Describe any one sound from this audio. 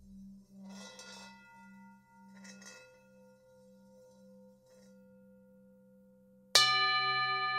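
A singing bowl rings with a steady, humming tone.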